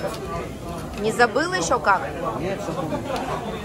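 Kitchen scissors snip through a strip of raw pork.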